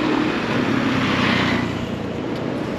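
A motor scooter passes close by.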